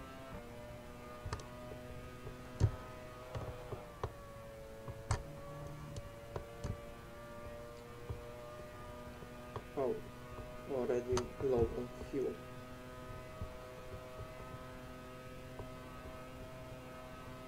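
A racing car engine whines at high speed.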